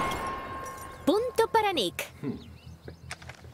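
A young woman speaks with surprise.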